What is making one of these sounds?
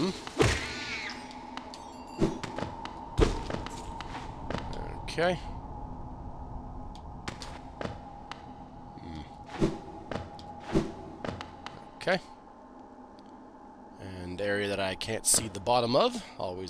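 Small footsteps patter on stone.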